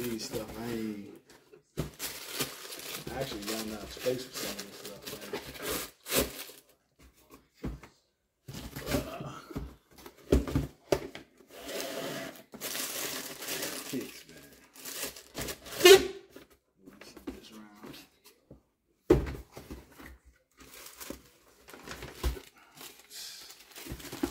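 Tissue paper crinkles inside a shoe box.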